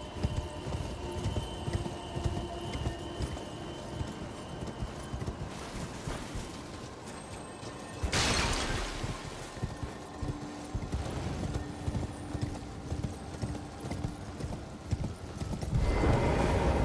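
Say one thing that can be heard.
Horse hooves clatter quickly on stone.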